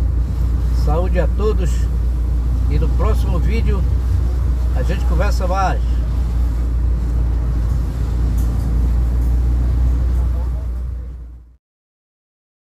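A car drives along a wet road, heard from inside the car.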